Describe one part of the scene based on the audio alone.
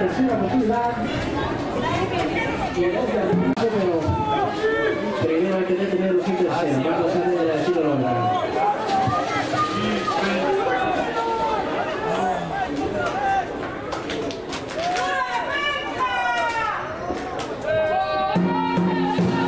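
Young men shout and call out from the sideline nearby.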